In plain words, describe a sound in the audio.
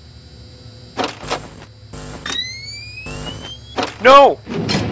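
Static hisses and crackles from a security monitor.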